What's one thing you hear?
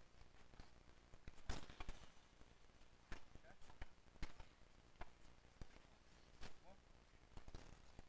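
Hockey sticks slap and clack against a ball on a hard court.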